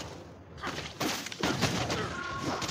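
Video game combat sound effects clash and whoosh in quick bursts.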